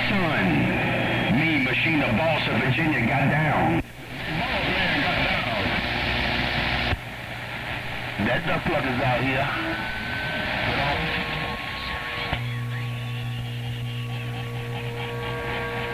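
A radio receiver crackles and hisses with static and warbling signals through its loudspeaker.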